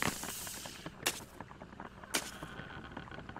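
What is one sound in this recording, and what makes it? A wooden hatch bangs open.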